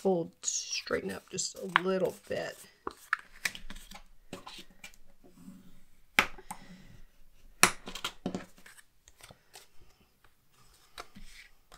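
Card stock rustles and taps as hands handle it.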